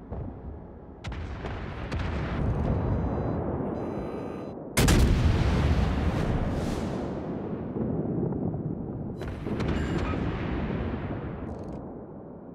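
Heavy ship guns fire with deep booms that roll away.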